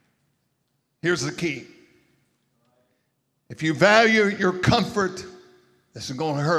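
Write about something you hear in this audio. A man preaches with animation into a microphone, his voice echoing in a large hall.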